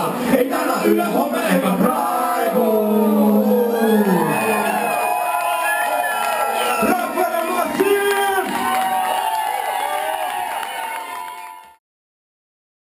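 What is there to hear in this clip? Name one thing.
A man raps loudly into a microphone.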